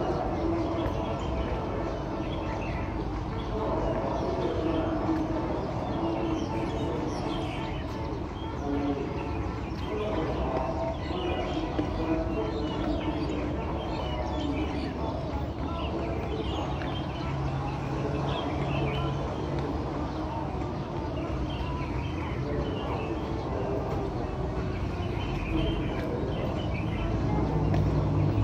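Shoes shuffle and tap lightly on a hard outdoor surface.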